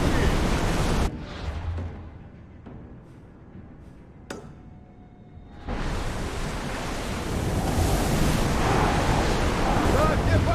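Water rushes and splashes loudly against a ship's hull as it cuts through waves.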